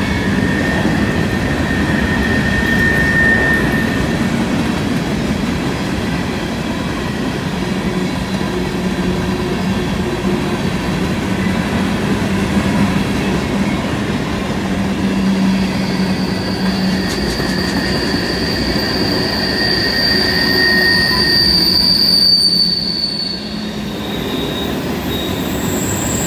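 Steel wheels squeal on the rails as a freight train passes.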